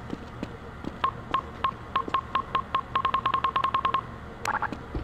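A computer console beeps rapidly in short electronic tones.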